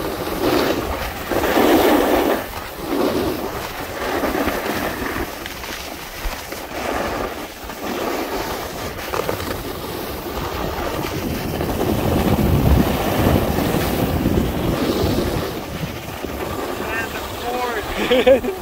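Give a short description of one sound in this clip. A snowboard carves across semi-firm groomed snow with a scraping hiss.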